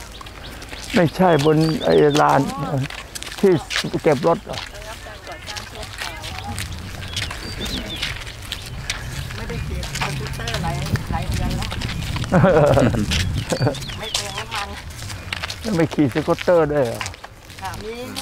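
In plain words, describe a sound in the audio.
Men talk calmly nearby, outdoors.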